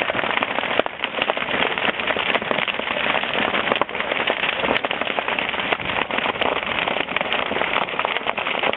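A large bonfire roars loudly.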